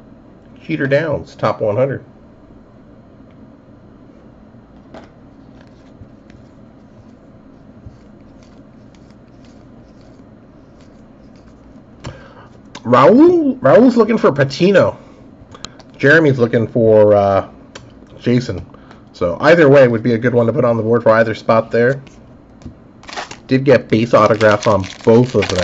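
Trading cards slide and rustle softly against each other.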